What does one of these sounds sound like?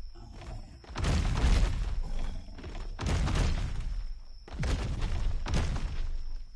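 Thunder rumbles and crashes in heavy bursts.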